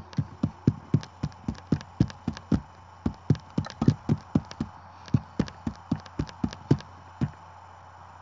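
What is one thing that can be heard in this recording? Electronic music plays with a steady, punchy drum beat.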